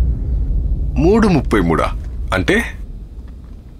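A younger man speaks in a low, tense voice.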